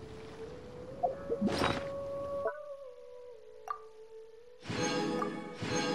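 A menu chime sounds sharply.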